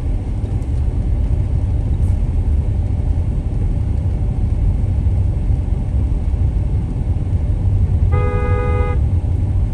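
A car engine hums and tyres rumble on the road, heard from inside the car.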